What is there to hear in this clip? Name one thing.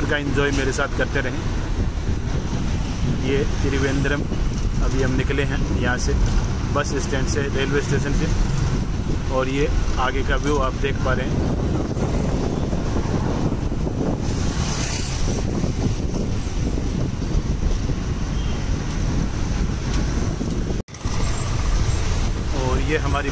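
Wind rushes past an open bus window.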